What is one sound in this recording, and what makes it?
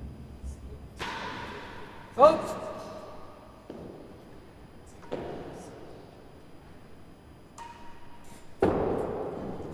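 A racket hits a ball with sharp cracks that echo around a large hall.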